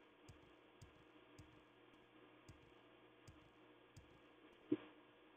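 Footsteps thump steadily on a hard floor.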